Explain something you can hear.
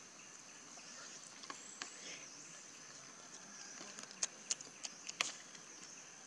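A young macaque chews food with soft smacking sounds.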